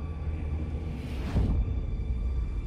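A heavy boot stomps on a hard floor.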